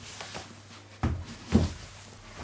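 A heavy boxed item thumps down onto a table.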